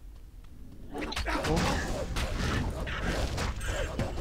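Weapons clash and strike in a noisy fight.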